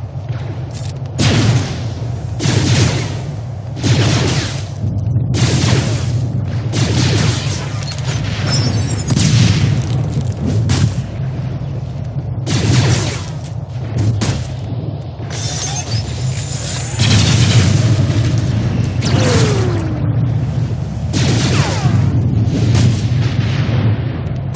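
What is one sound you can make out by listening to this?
Laser blasters fire in quick bursts.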